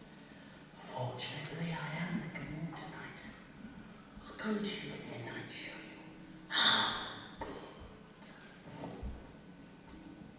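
A young man speaks in a large echoing hall.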